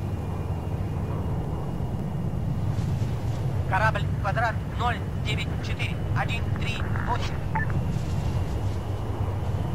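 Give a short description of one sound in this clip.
A propeller plane drones steadily far overhead.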